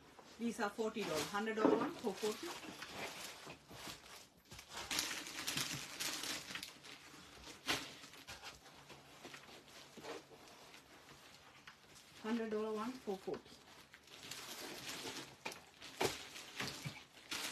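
Silky fabric rustles and swishes as it is shaken and unfolded.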